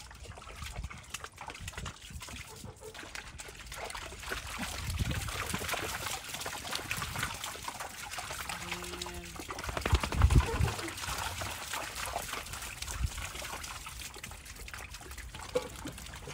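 Sheep splash through shallow water.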